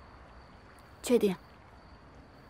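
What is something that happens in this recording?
A young woman answers softly, close by.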